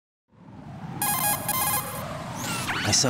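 An electronic radio tone beeps in a quick repeating pattern.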